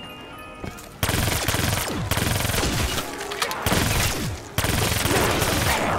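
A rapid-fire gun shoots in quick bursts.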